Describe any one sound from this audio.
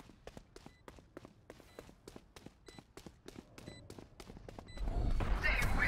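Footsteps tap quickly on a hard floor.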